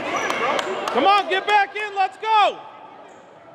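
A referee's whistle blows in several short sharp bursts.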